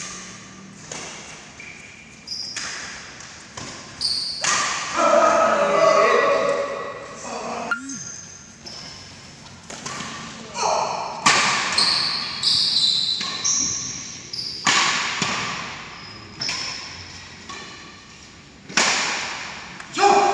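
Shoes squeak and scuff on a court floor.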